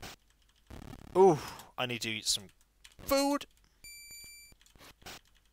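Electronic game beeps and tones sound in short bursts.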